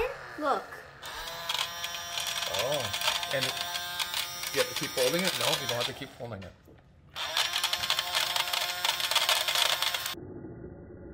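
A toy vacuum cleaner whirs steadily.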